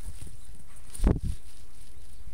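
A wooden stick thuds onto dry ground.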